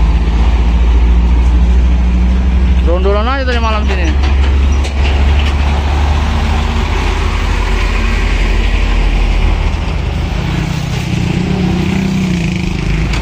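Traffic roars steadily along a road outdoors.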